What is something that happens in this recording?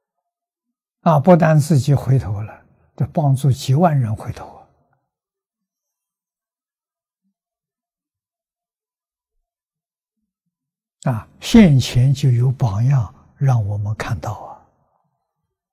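An elderly man speaks calmly and warmly, close to a microphone, in short phrases with pauses.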